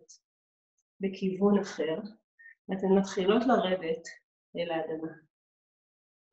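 A woman speaks calmly and clearly, close by, as if instructing.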